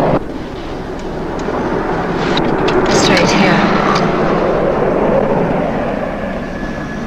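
A car engine hums as a car pulls up and stops.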